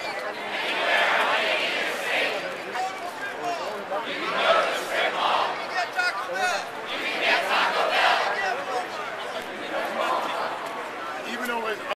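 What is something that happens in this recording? A crowd of adults repeats spoken phrases in unison outdoors.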